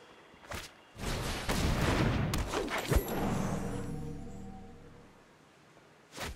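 Magical game sound effects swell and chime as a card is played.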